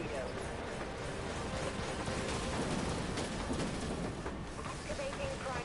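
Cannons fire in rapid bursts.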